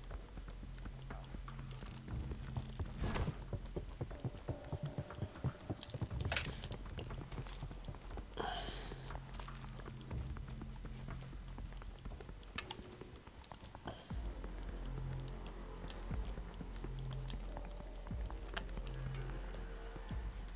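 Footsteps thud quickly on stone and wooden floors.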